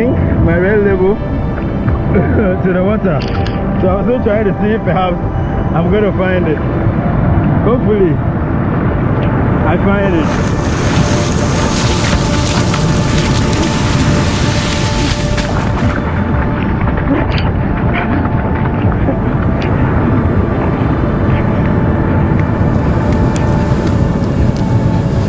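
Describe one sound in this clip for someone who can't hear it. Strong wind roars into the microphone.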